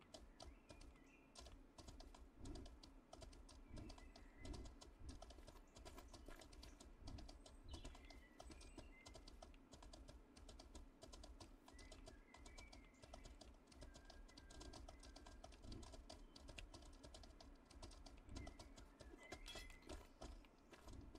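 A horse's hooves clop steadily on a path.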